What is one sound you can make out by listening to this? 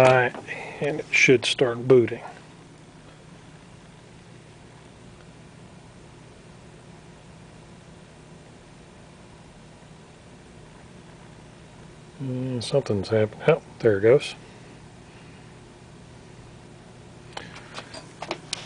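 A computer hums steadily nearby.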